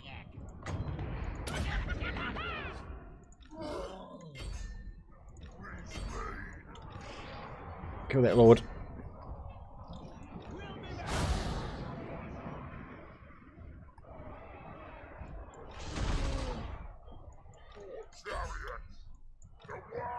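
Weapons clash and thud in a large battle.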